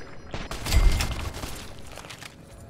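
A rifle fires a loud shot with a booming echo.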